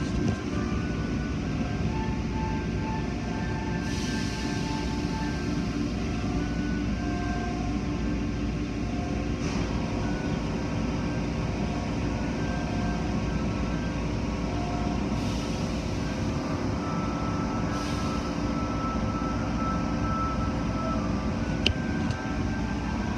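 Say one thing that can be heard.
Machinery rumbles and hums steadily.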